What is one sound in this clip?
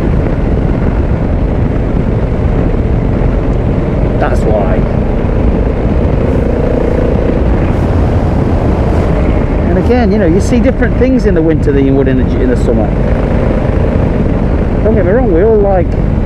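Wind roars steadily past a moving motorcycle.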